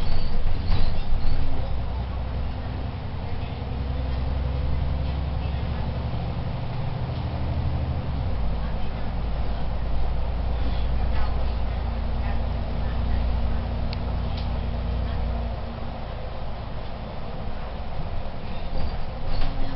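Windows and fittings rattle inside a moving bus.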